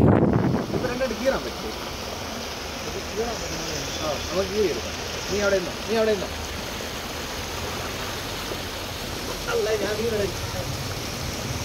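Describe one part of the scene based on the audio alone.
Young men talk to each other outdoors.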